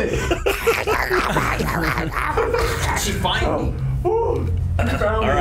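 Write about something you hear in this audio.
Several adult men talk and react with animation, heard close through microphones.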